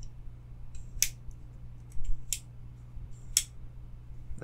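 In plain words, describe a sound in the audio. A folding knife blade clicks sharply as it snaps open and shut.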